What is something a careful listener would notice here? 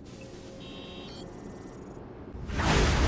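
Electronic beeps and chimes sound briefly.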